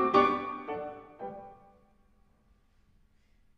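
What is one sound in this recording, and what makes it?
A grand piano plays loud chords that ring out and fade into silence.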